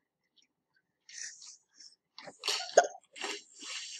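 A dog splashes into water.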